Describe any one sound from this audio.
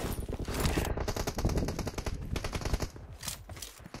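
Rapid gunfire rattles in a video game.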